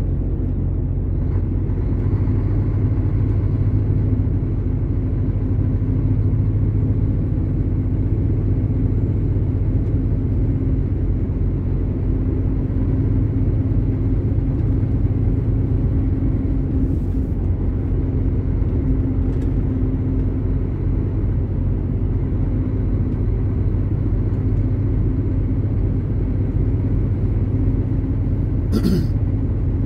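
A vehicle's engine drones steadily from inside the cab.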